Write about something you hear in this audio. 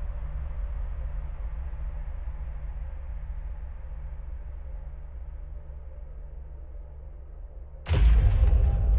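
Game music plays softly and steadily.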